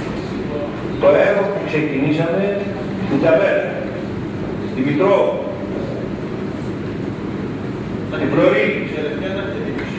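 An older man speaks emphatically into a microphone.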